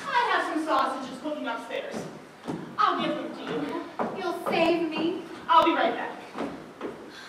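A young woman speaks with feeling on a stage, heard from across a hall.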